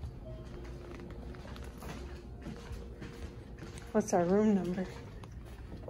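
Footsteps pad softly on carpet.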